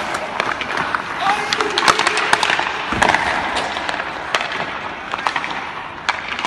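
Hockey sticks clack and pucks smack sharply, echoing in a large rink.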